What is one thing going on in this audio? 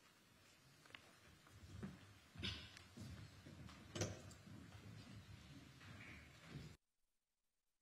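Footsteps tap across a hard floor in a large room.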